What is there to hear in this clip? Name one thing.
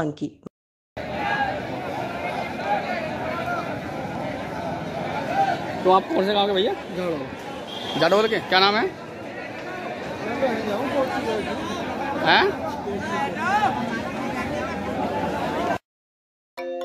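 A large crowd murmurs and calls out outdoors.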